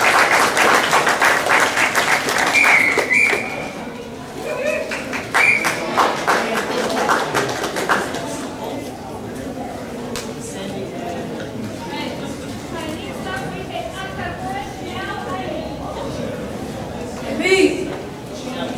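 A karate competitor shouts sharply.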